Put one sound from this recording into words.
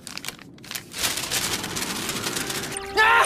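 Many sheets of paper flutter and rustle loudly.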